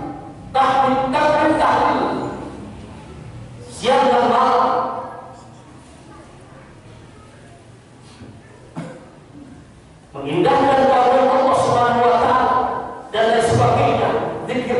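A man preaches loudly and with passion through a microphone in a large echoing hall.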